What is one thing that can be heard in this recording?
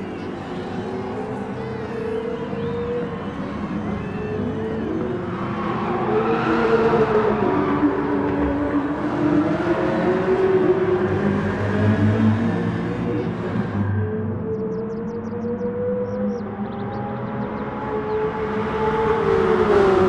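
Racing car engines roar and whine as they speed past.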